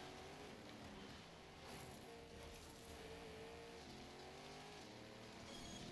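A racing car engine roars and revs at high speed.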